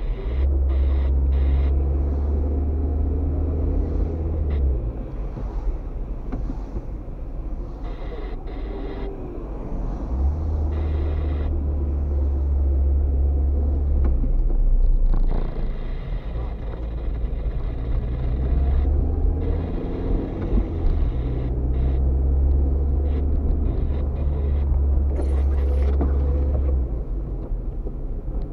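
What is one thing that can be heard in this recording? A car engine hums steadily from inside while driving.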